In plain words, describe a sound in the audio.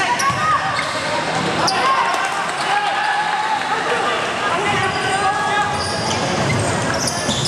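A bouncing basketball thumps on the floor.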